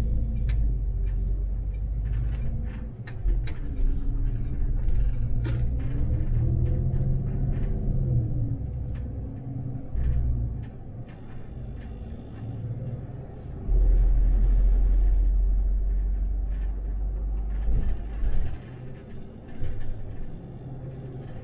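Tyres roll over asphalt beneath a city bus.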